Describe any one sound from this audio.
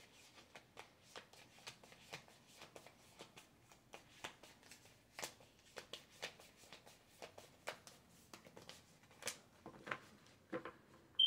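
Playing cards are shuffled with soft rapid clicks.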